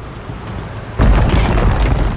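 Water rushes and roars nearby.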